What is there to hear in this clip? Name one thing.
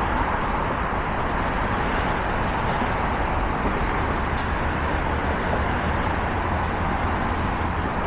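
A car drives past close by on the bridge.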